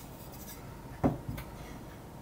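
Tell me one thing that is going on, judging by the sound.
A metal square taps against wood.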